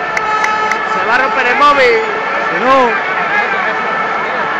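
Fans in a stadium crowd whistle shrilly in loud bursts.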